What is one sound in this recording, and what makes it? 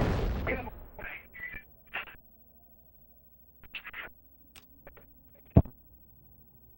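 Menu beeps sound in quick short bursts.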